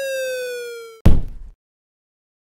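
A body hits the floor with a heavy thud.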